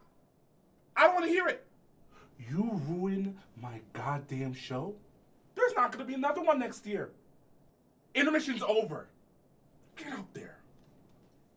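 A young man shouts angrily at close range.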